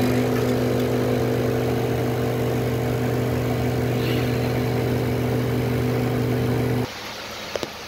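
An espresso machine hums loudly and steadily.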